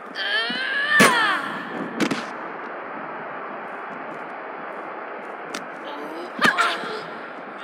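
Blows land with sharp thuds during a fight.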